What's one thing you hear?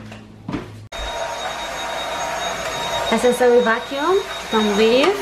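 A handheld vacuum cleaner whirs steadily.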